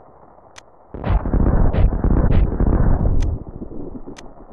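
Video game missiles fire with rough, noisy blasts.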